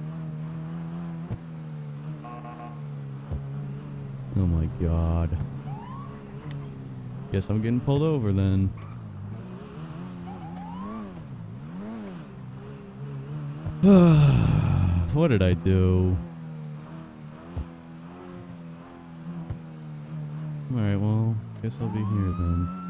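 A sports car engine hums steadily and revs up and down repeatedly.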